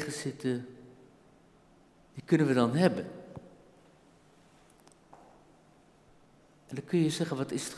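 An elderly man speaks slowly and calmly through a microphone in an echoing room, with long pauses.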